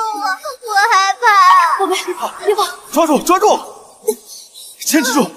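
A young woman calls out in a soothing, urgent voice.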